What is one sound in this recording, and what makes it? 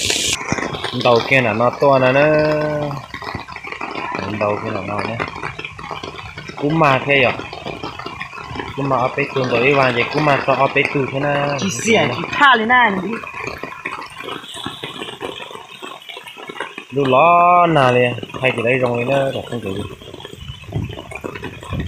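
A stream rushes and gurgles nearby.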